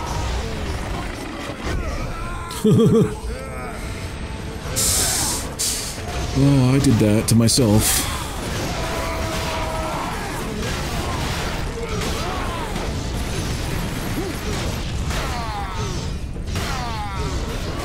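Monstrous creatures snarl and growl.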